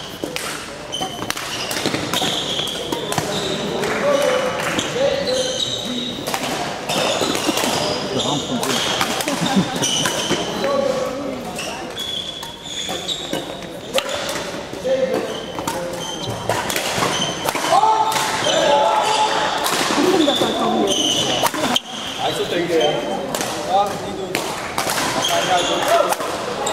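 Shoes squeak sharply on a hard floor.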